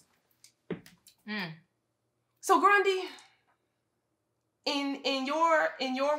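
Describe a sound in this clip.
A woman speaks with animation, close to a microphone.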